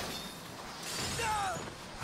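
Ice shatters with a loud crash.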